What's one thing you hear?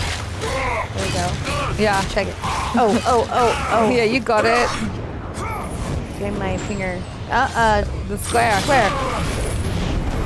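A young woman talks with animation into a nearby microphone.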